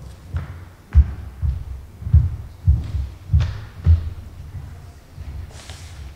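Footsteps thud as a man walks across the floor.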